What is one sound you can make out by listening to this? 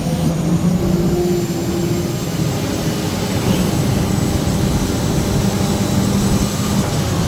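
A diesel engine rumbles steadily.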